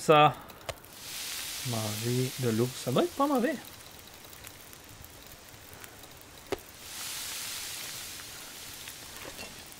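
A fire crackles and hisses.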